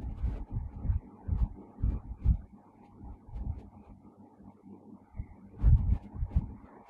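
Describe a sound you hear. A man speaks calmly and slowly into a close microphone.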